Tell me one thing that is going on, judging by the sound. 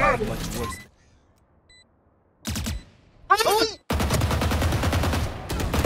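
Rapid gunfire cracks in a video game.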